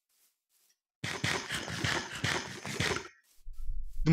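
Crunchy chewing sounds come in quick bursts.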